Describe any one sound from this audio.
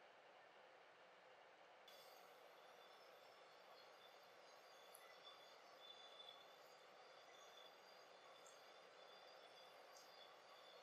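Fingertips stroke softly across the skin of a face.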